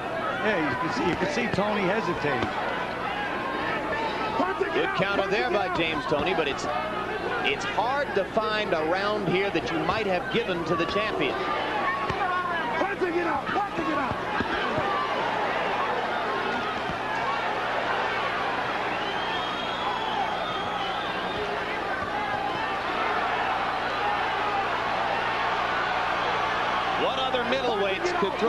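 Boxing gloves thud against a body in quick blows.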